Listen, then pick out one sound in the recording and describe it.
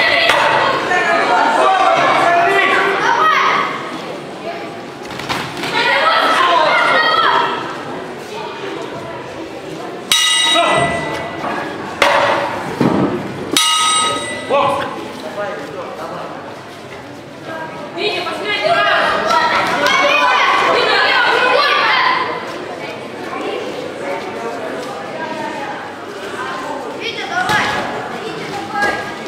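Spectators shout and cheer loudly in an echoing hall.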